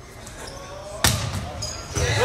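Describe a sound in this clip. A volleyball is struck with a sharp smack during a serve.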